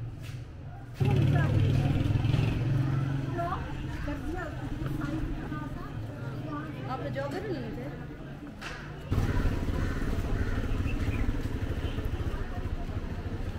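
A crowd of men and women chatters on a busy street outdoors.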